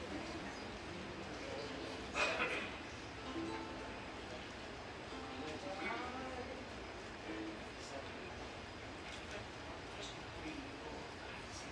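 Ukuleles strum softly.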